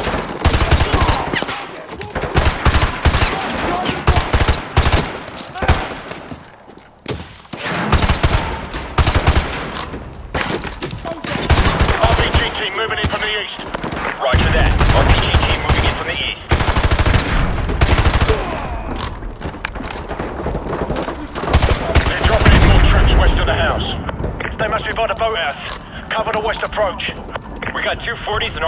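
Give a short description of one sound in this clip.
Automatic gunfire rattles in rapid, loud bursts.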